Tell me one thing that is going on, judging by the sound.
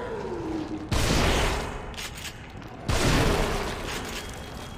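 A pistol fires twice with loud bangs.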